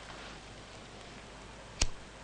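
A lighter clicks once.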